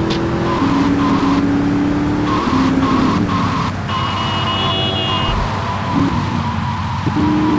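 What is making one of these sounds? A sports car engine hums steadily as it drives.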